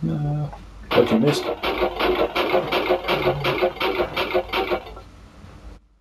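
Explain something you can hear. A game's counter ticks rapidly as it tallies up a score.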